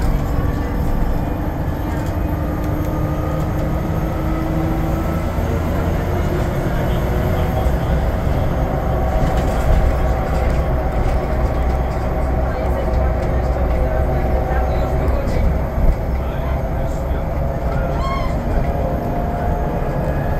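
Tyres roll on the road with a steady rumble.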